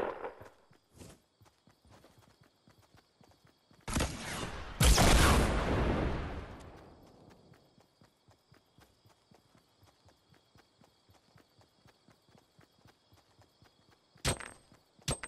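Footsteps patter quickly on the ground while running.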